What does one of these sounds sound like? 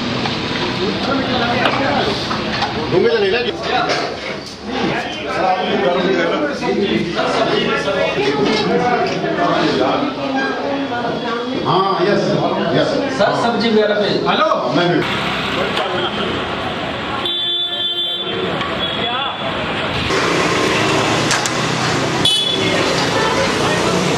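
A crowd of men chatters in a busy street.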